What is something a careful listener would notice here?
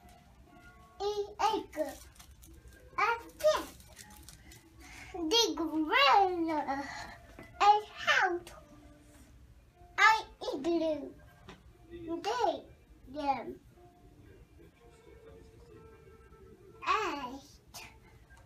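A toddler babbles and chatters in short bursts close by.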